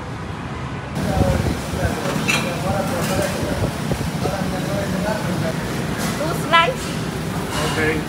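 Metal utensils and cups clatter and clink.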